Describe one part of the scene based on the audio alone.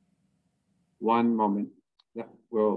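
Another young man speaks over an online call.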